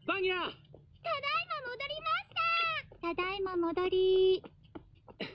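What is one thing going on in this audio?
Young girls shout cheerfully together.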